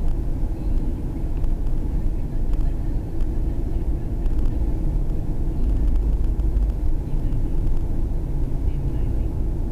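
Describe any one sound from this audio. A car drives at speed on a highway, with its engine and road rumble heard from inside.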